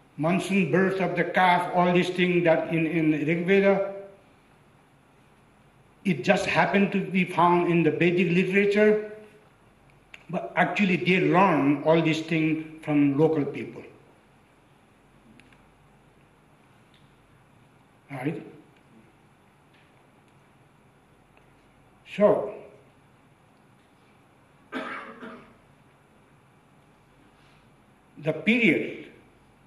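An elderly man speaks calmly and deliberately into a microphone, with long pauses.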